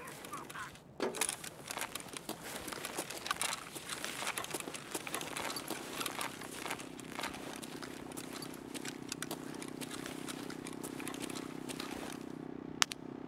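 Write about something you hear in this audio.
Footsteps crunch over scattered debris.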